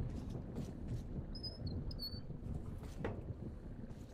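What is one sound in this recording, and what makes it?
A heavy metal door creaks open.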